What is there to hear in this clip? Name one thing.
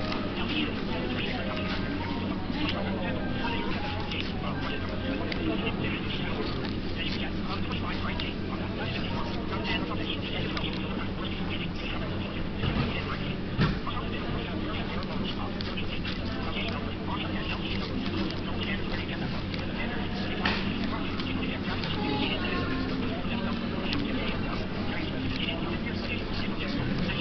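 Small scissors snip softly through paper.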